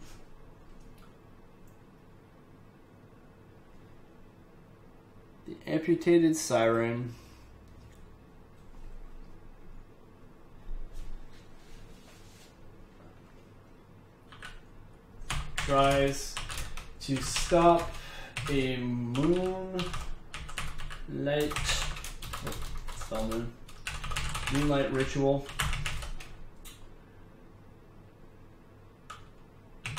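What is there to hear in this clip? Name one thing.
Keys click on a keyboard.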